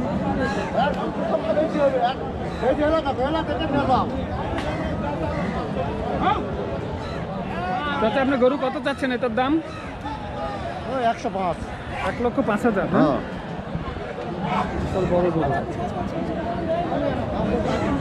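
Many voices of a crowd chatter outdoors.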